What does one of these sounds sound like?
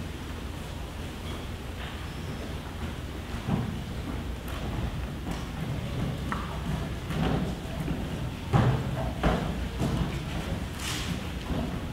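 Footsteps shuffle as children walk across a stage.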